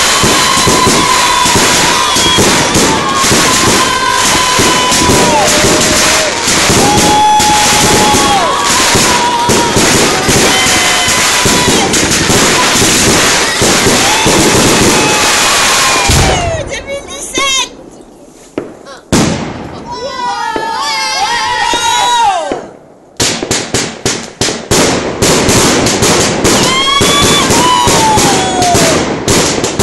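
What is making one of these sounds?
Fireworks crackle and pop in rapid, dense bursts.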